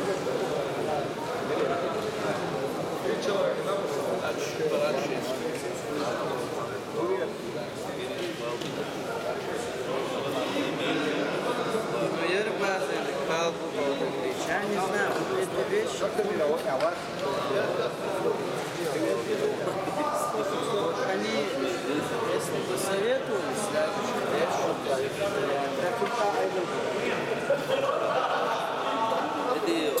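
A crowd of men chatters throughout a large echoing hall.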